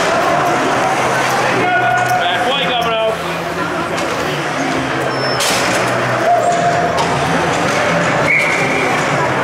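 A crowd of spectators chatters and shouts in a large echoing arena.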